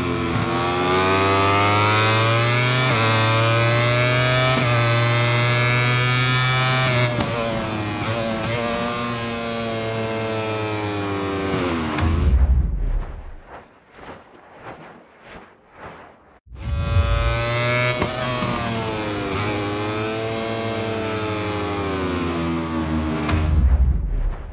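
A motorcycle engine roars loudly, revving up and down through the gears.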